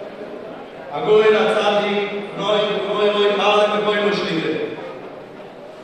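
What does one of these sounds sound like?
A man chants loudly over a loudspeaker in a large echoing hall.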